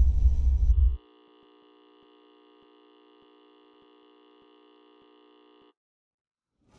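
A steady electronic test tone drones.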